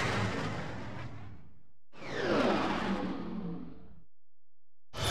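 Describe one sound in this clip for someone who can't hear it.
A spaceship whooshes past with a low rumble.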